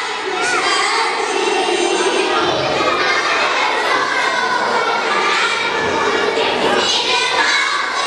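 A choir of young girls sings together through microphones in an echoing hall.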